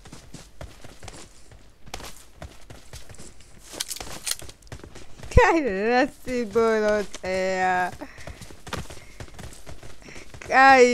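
Footsteps crunch quickly over dirt and grass.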